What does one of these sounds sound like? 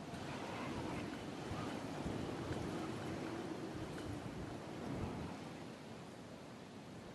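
Wind rushes steadily past a glider descending through the air.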